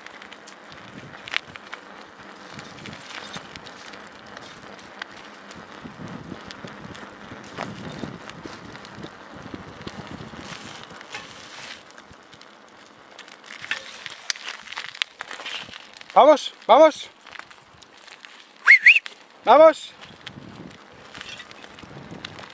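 Bicycle tyres crunch and roll over a dirt trail.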